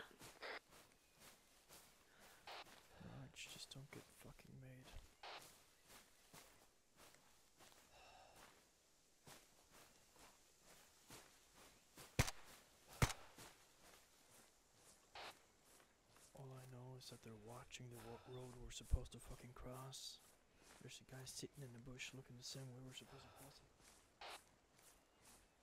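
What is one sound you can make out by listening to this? Footsteps rustle through dry grass and undergrowth.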